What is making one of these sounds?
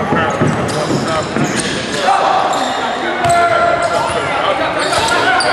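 Young men shout across a large echoing gym.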